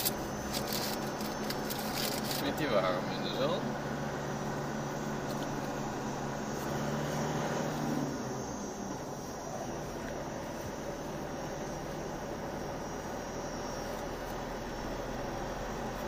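A vehicle's engine hums steadily as it drives along a dirt track.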